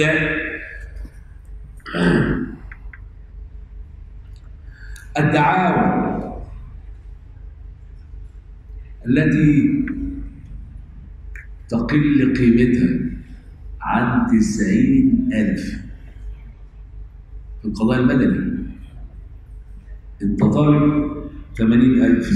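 An older man speaks calmly into a microphone, with pauses between phrases.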